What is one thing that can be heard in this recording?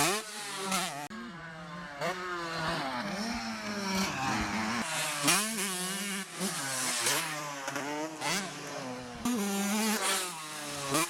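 A dirt bike engine revs loudly, rising and falling in pitch.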